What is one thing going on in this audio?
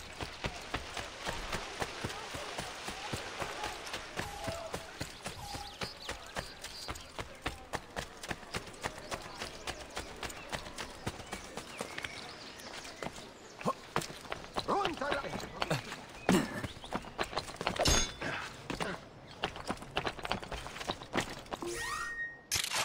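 Quick footsteps run over stone and then over roof tiles.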